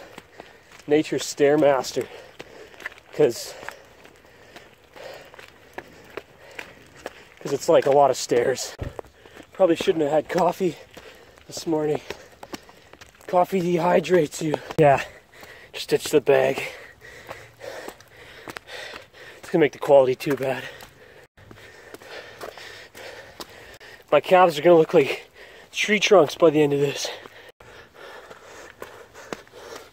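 Footsteps crunch on a forest trail.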